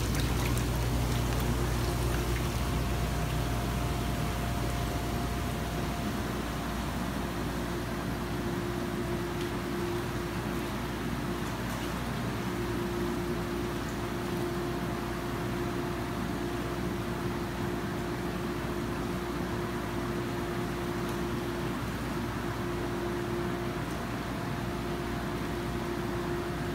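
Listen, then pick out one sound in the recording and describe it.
A pump motor hums low and steadily.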